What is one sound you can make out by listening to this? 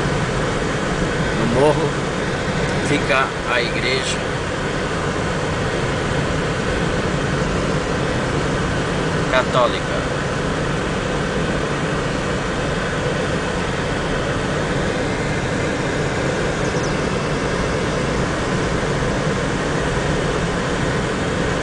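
Tyres roll steadily over an asphalt road.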